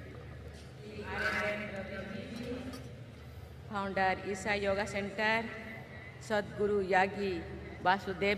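An elderly woman speaks slowly and formally through a microphone and loudspeakers.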